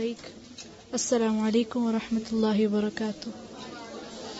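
A woman recites in a slow, melodic chant close to a microphone.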